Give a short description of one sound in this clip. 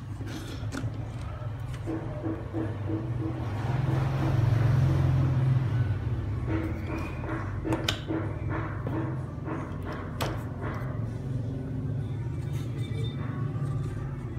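Plastic RCA plugs click and rattle as hands fit them together.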